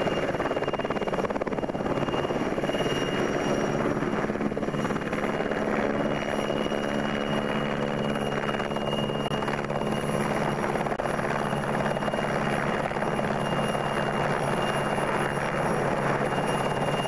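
A helicopter's rotor thumps loudly close by.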